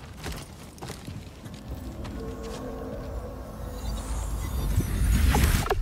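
A shimmering magical hum swells.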